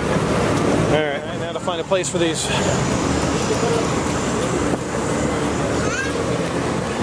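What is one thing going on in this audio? A vehicle engine rumbles steadily while driving along a street.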